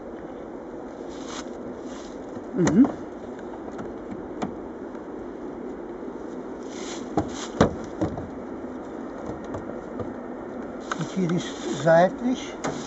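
Wooden boxes knock and scrape as they are handled.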